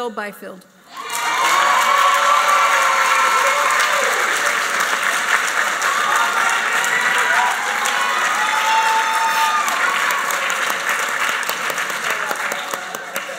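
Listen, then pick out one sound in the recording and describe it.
An audience applauds and cheers loudly.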